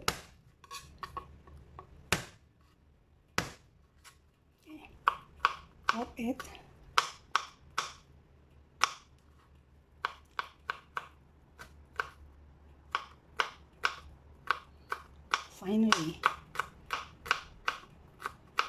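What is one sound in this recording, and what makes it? A knife chops on a cutting board in quick taps.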